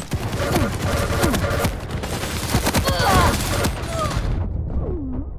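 An electric beam weapon crackles and hums in rapid bursts.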